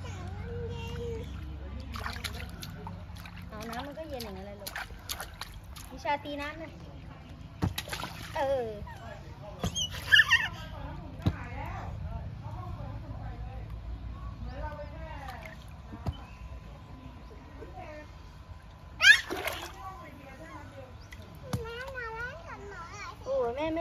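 Young children babble and squeal close by.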